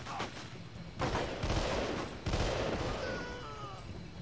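A rifle fires short bursts of gunshots.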